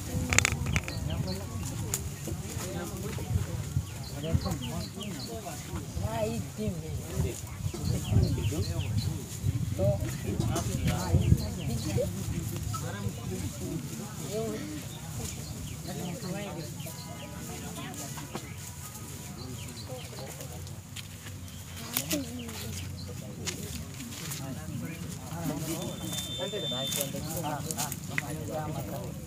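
Several people in a crowd murmur and talk nearby.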